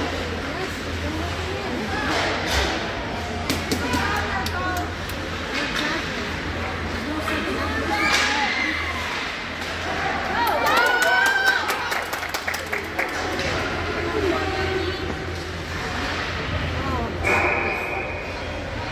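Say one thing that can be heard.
Spectators nearby call out and talk loudly.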